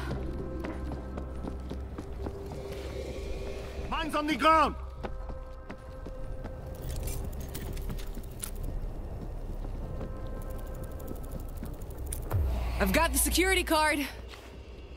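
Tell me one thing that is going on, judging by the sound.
Footsteps crunch on gravelly ground.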